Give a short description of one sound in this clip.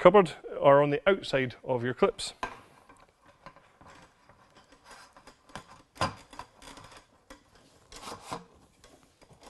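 A folding metal tabletop clatters as it is unfolded and set down.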